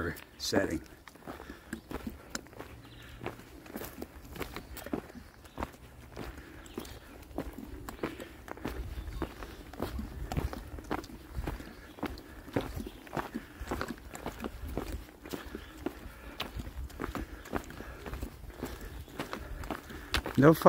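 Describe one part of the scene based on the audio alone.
Footsteps crunch steadily along a dirt path with dry leaves underfoot.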